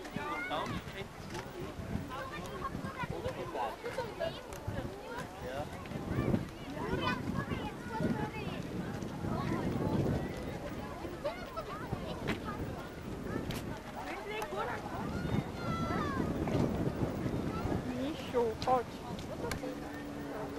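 Many people chatter and children call out nearby, outdoors.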